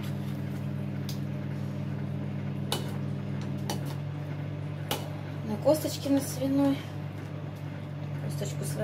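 A whisk clinks against a metal pot while stirring.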